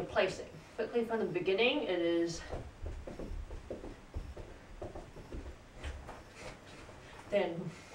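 A young woman speaks nearby.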